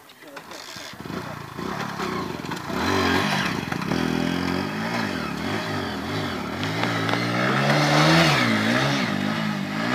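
A motorcycle engine rumbles and revs up and down close by.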